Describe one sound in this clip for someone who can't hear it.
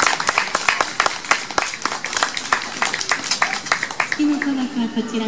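A small crowd claps hands outdoors.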